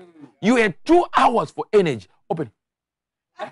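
A man preaches loudly and passionately into a microphone.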